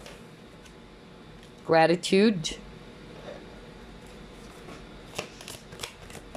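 A card is laid down softly on a wooden table.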